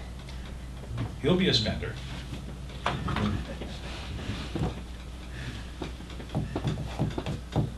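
A man speaks casually, a little way off.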